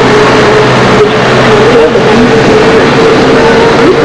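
A small bus engine idles while the bus stands.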